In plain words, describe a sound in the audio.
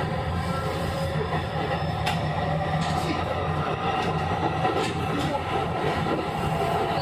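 An electric train hums steadily on the tracks.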